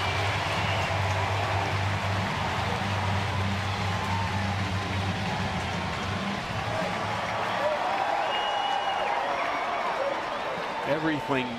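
A large crowd cheers and applauds loudly in a stadium.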